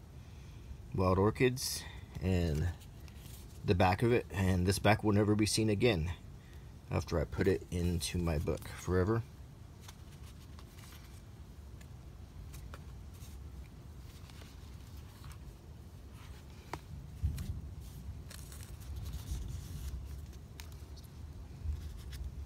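Paper rustles and crinkles softly as a stamp sheet is handled.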